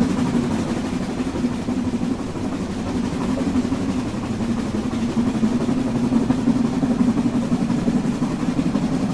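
A steam locomotive hisses and rumbles steadily while standing idle.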